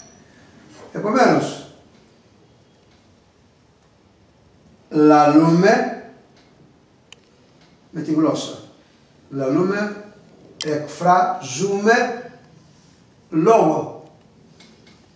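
A middle-aged man speaks calmly nearby in short phrases, with pauses between them.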